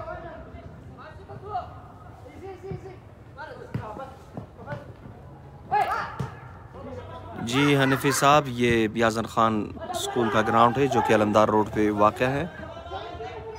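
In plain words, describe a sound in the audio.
A football is kicked with dull thuds on a dry field.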